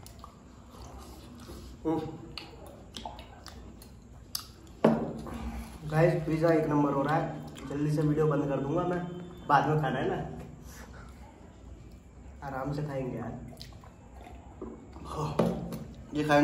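A young man sips a drink.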